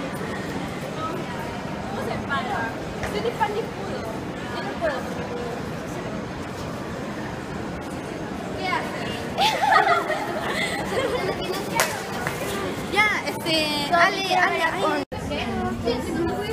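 Teenage girls talk with animation close by.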